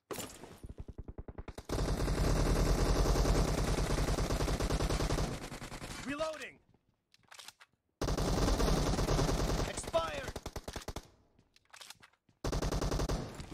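Rapid automatic gunfire rattles in a video game.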